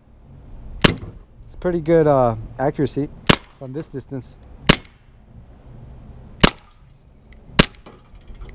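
A pistol fires single shots outdoors, each shot loud and sharp.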